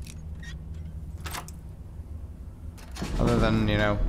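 A lock clicks open.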